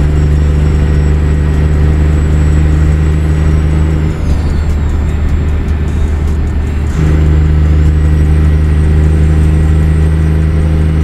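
A heavy truck engine drones steadily, easing off briefly before pulling again.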